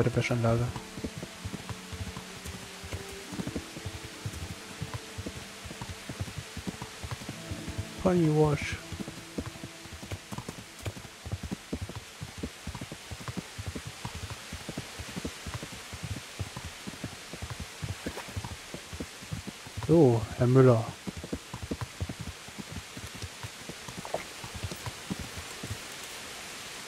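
Horse hooves clop steadily on a dirt track.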